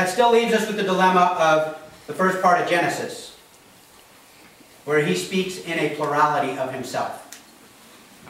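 A man speaks with animation in a room with a slight echo.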